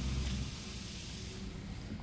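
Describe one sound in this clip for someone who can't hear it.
A spray bottle hisses a few times.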